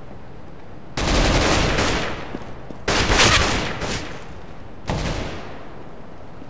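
Loud gunshots burst out nearby.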